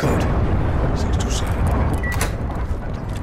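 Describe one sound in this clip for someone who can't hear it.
An electronic keypad beeps.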